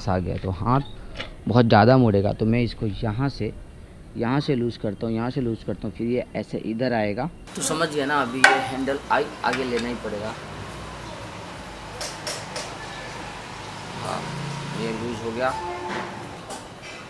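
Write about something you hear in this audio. A man speaks calmly close by, explaining.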